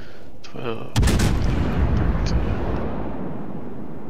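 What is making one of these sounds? A warship's heavy guns fire a loud booming salvo that rumbles away.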